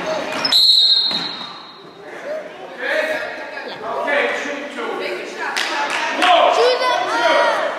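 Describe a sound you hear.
Young girls shout and call out across an echoing gym.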